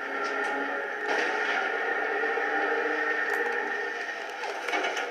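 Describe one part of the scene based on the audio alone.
An explosion booms through a television speaker.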